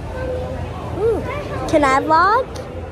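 A young girl squeals loudly up close.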